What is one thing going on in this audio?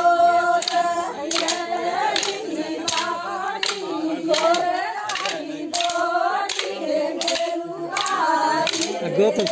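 A crowd of women sings and chants outdoors.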